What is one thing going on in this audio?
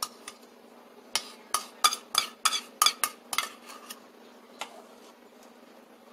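A spoon scrapes and taps against a container.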